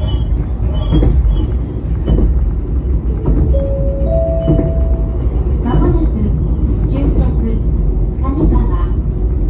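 Train wheels clack and squeal over the rails.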